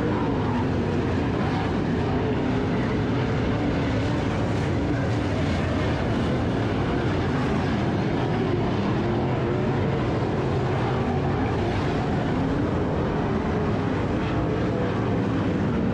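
Engines rev up and down as cars take the corners.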